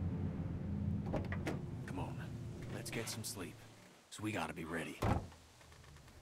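A man speaks quietly and calmly, close by.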